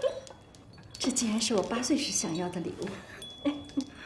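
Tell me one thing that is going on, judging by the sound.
A middle-aged woman speaks with delight close by.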